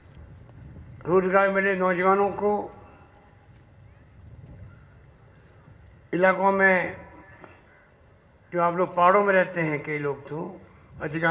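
A man makes a speech through a microphone and loudspeakers, speaking with emphasis in bursts.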